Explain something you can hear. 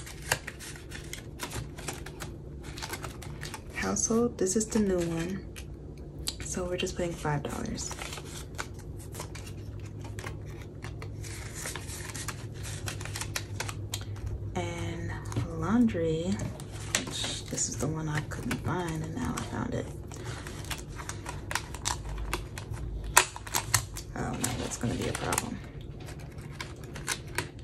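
Plastic sleeves and paper rustle and crinkle as they are handled.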